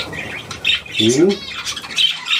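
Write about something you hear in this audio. An elderly man speaks briefly and calmly, close by.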